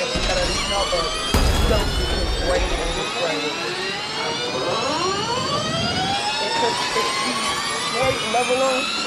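A racing car engine whines at high revs, rising and dropping in pitch as gears change.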